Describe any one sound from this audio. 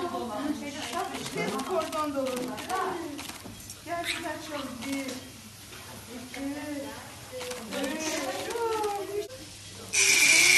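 Several women talk with animation close by.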